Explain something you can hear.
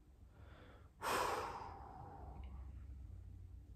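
A young man exhales sharply into a close microphone.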